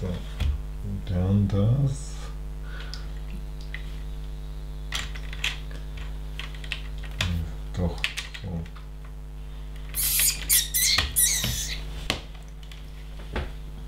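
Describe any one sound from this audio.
Small plastic bricks click and rattle under a person's hands.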